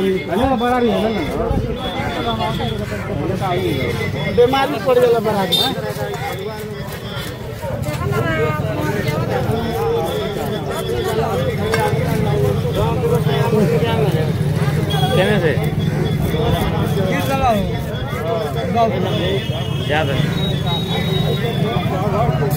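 A knife scrapes scales off a fish.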